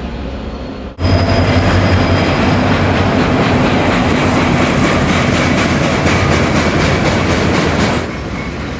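A diesel freight train rolls past on rails.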